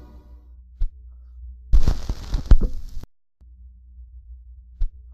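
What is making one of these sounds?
A vinyl record pops and crackles as it spins.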